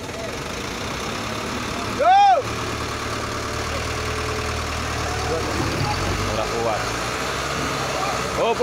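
A crane truck's engine rumbles steadily nearby.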